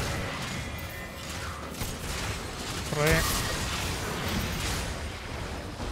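Weapons clash and thud in quick bursts.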